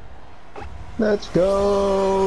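A short chime sounds.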